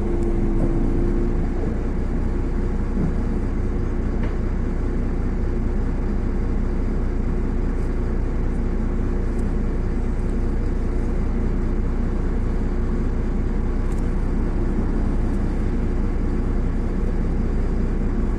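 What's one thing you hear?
A vehicle engine rumbles steadily from inside a moving car.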